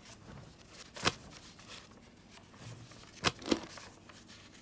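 Metal latches on a case snap open with sharp clicks.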